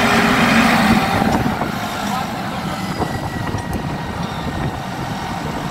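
A tractor engine idles nearby with a low rumble.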